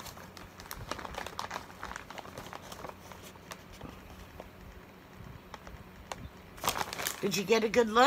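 A paper bag rustles and crinkles close by.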